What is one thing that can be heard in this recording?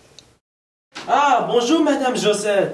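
A young man greets someone cheerfully.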